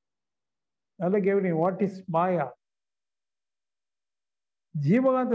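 An older man speaks emphatically into a clip-on microphone.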